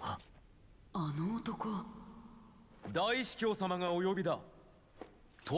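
A young man speaks calmly and firmly.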